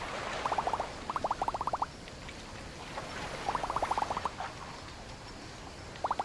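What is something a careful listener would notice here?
Gentle waves wash onto a sandy shore.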